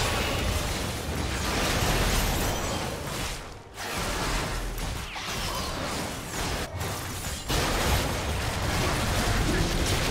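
Game spells and attacks crackle and thud in a fight.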